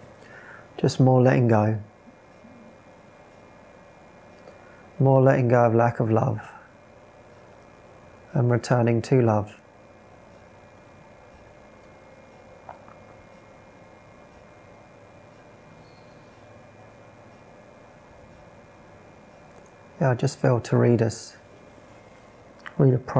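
A man speaks calmly into a close microphone in short phrases with pauses.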